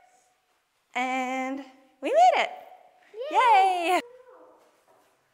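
A young girl speaks in a high voice.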